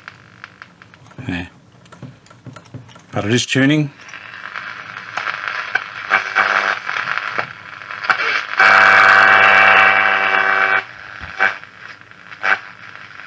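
A radio crackles and whistles as its tuning knob is turned.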